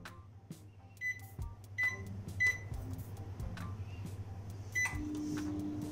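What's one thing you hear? Microwave buttons beep as they are pressed.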